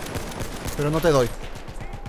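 A rifle bolt clacks as it is worked.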